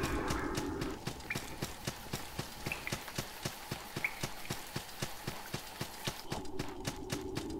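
Quick footsteps tap on stone.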